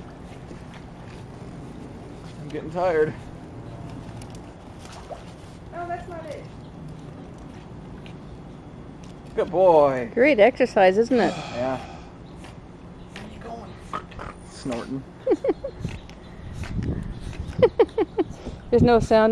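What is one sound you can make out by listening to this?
A dog paddles through water with soft splashes.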